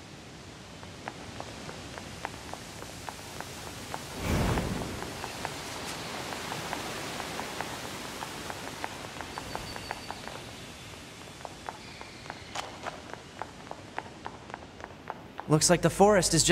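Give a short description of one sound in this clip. Quick footsteps patter on stone as a figure runs.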